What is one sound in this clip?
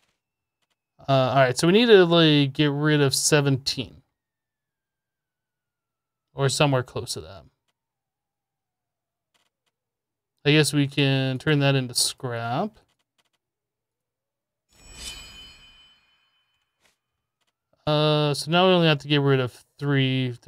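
A man talks calmly and close to a microphone, in short bursts with pauses.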